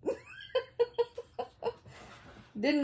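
A woman laughs heartily close by.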